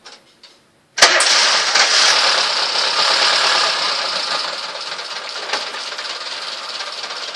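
A car engine starts suddenly and roars loudly, then settles to a steady idle.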